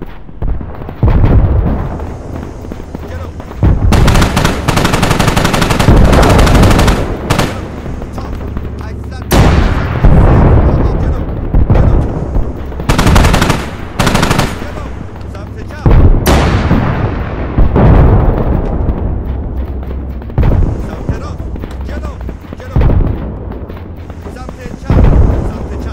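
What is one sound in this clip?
A rapid-fire cannon fires loud bursts of shots.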